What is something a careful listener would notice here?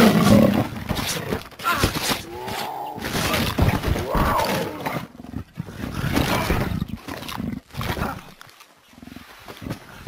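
A big cat growls while tearing at prey.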